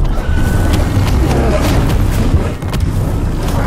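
Rocks and debris clatter down.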